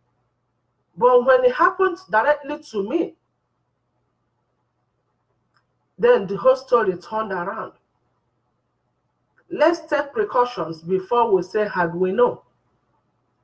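A woman speaks calmly and close to a microphone, in short bursts with pauses.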